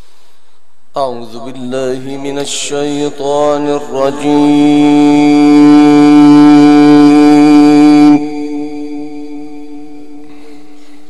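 A man chants a long, drawn-out note through a microphone, echoing loudly and then fading.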